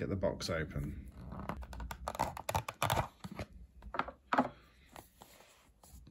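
A cardboard box scrapes and rustles as hands open it.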